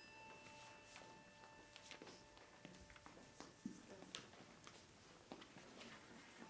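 Paper rustles in a person's hands.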